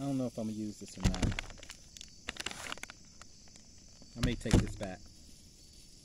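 Packaging rustles and crinkles in a man's hands.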